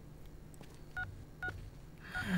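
Phone keys beep as a man presses them.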